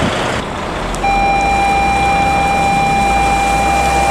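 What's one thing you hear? A bus engine hums as the bus drives closer.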